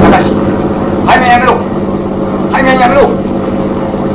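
A man speaks urgently into a radio microphone.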